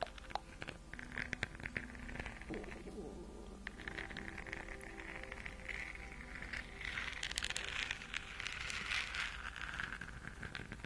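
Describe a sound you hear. Fingernails scratch and rub across a hard plastic ball close to a microphone.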